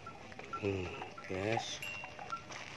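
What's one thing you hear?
A calf moos briefly close by.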